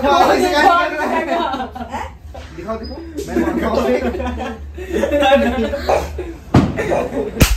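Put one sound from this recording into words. Young men talk and laugh loudly close by.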